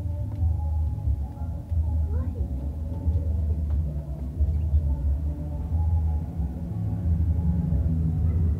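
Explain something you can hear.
A hand rubs and scratches a dog's fur close by.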